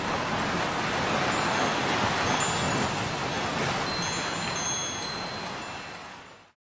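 Ocean waves crash and roar, then slowly fade.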